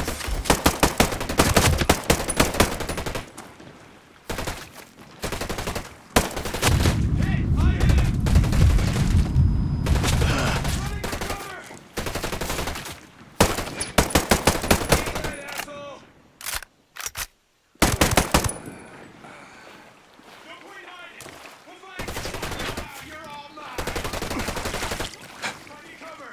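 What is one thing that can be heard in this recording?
Rapid bursts of gunfire crack nearby.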